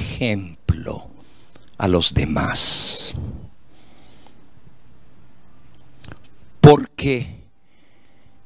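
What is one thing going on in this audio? An elderly man preaches with emotion into a microphone, in bursts separated by pauses.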